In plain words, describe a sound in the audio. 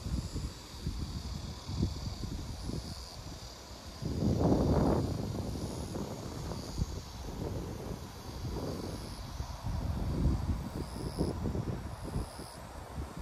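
Wind gusts outdoors and buffets against the microphone.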